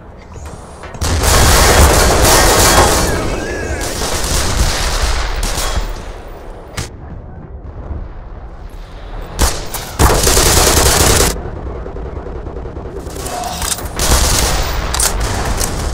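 An automatic rifle fires in loud, rapid bursts.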